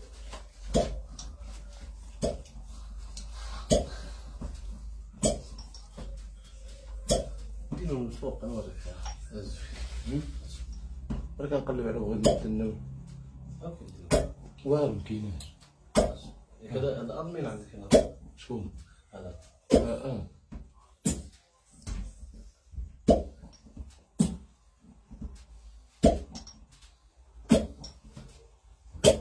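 Hands slap and rub oiled skin.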